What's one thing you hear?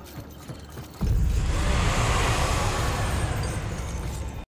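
A glowing portal roars with a loud rushing whoosh.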